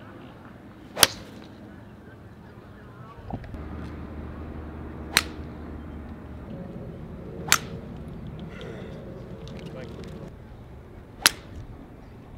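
A golf driver strikes a ball off the tee with a sharp crack.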